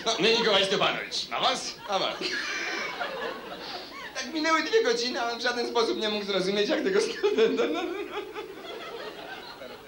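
A man speaks animatedly into a microphone.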